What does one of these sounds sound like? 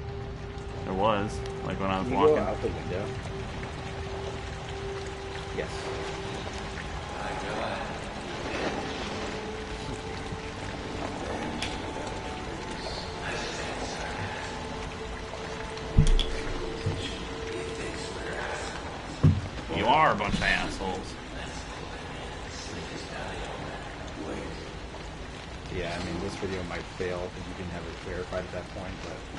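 Young men talk with animation close to a microphone.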